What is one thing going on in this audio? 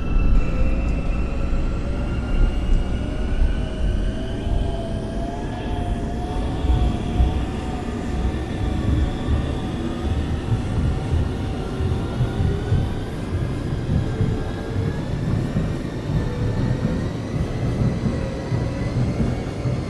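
A train carriage rumbles steadily on the tracks.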